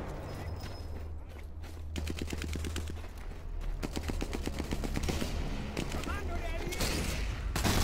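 Footsteps run quickly over dry grass.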